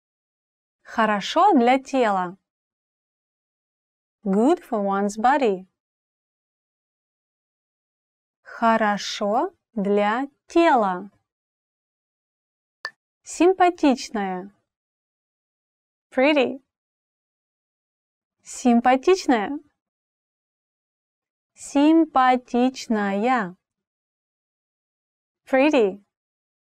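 A young woman speaks slowly and clearly, in short phrases with pauses, close to a microphone.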